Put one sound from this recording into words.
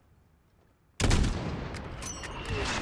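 A sniper rifle fires a single loud shot that rings out and slowly fades.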